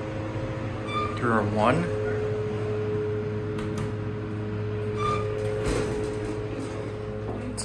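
An elevator car hums as it travels.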